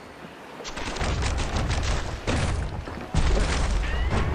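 Game sound effects crash and thump as blows land in a fight.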